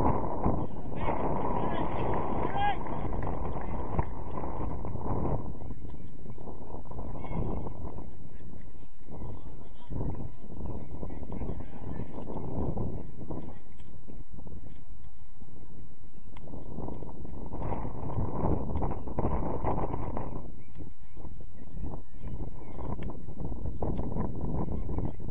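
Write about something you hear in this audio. Football players shout to each other in the distance across an open field.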